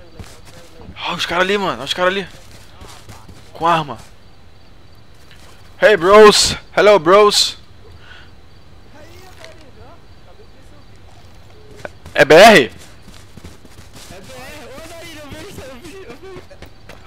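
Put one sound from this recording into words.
A young man talks with animation into a close microphone, at times shouting.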